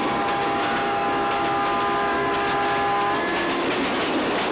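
A train horn blares loudly.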